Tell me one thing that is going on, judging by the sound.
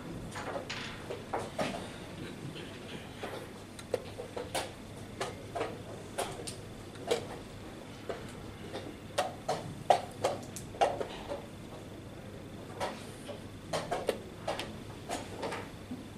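A chess piece is set down on a wooden board with a light click.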